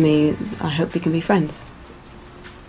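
A woman talks calmly nearby.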